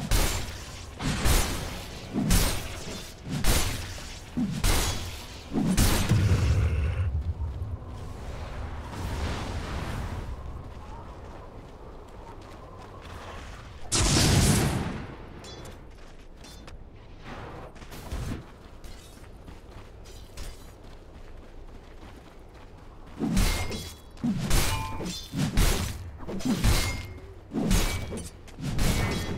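Game combat effects clash and burst in quick hits.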